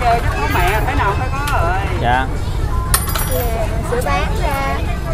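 Young children chatter in high voices nearby.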